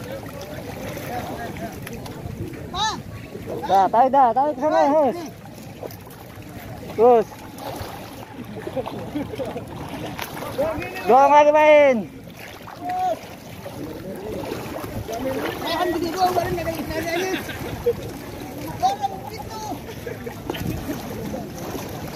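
Water splashes and sloshes as men wade and pull up plants.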